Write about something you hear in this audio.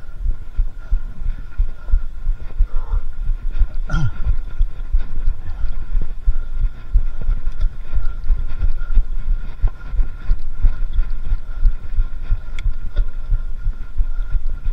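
Bicycle tyres roll and bump over a dirt trail.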